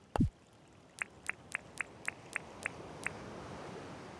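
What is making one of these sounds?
Soft menu ticks click in quick succession.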